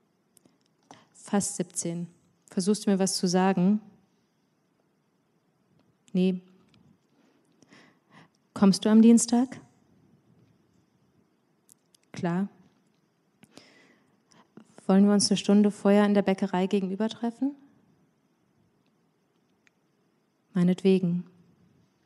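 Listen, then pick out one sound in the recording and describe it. A young woman reads aloud calmly into a microphone, with pauses.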